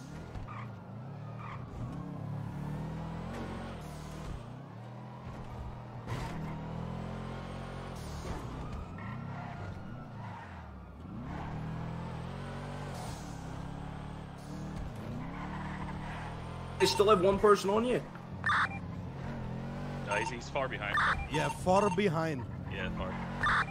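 A sports sedan engine revs and shifts through gears as the car drives.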